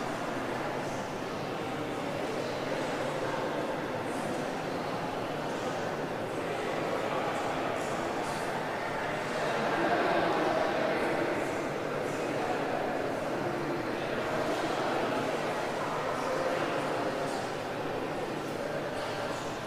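City traffic hums nearby.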